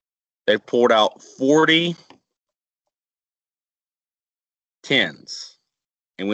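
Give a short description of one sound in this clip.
A woman explains calmly and clearly through a microphone, in short phrases.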